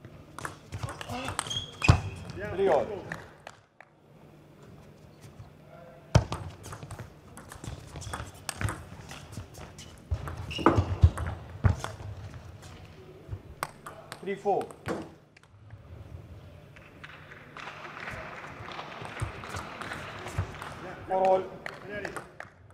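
A table tennis ball clicks sharply off paddles and the table.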